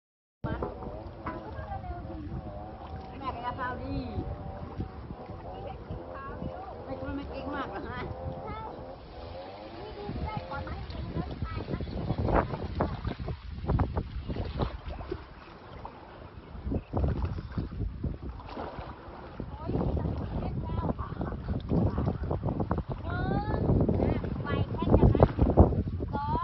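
Water splashes as someone wades through shallow water.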